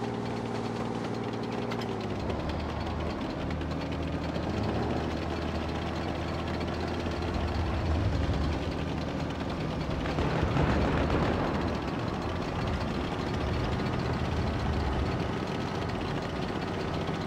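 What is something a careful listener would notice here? A tank engine rumbles steadily as the tank drives over rough ground.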